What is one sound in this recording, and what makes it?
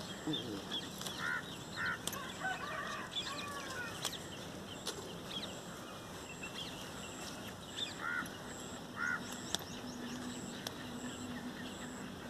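Leaves rustle as a hand picks beans from plants.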